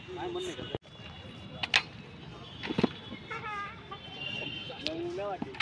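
Rifles clack and knock as they are handled.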